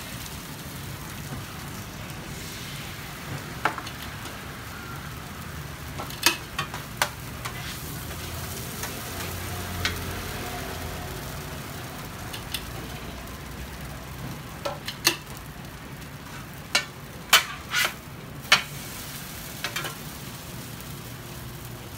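Batter sizzles on a hot griddle.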